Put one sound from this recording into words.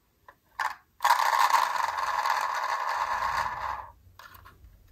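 A toy car's wheel whirs as it spins.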